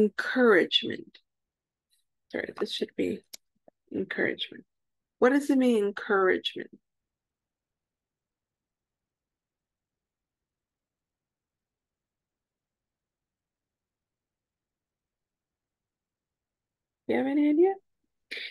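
A woman speaks calmly through an online call, in short phrases with pauses.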